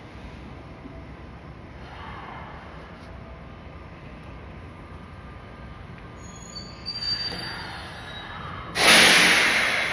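A train rolls slowly and comes to a stop.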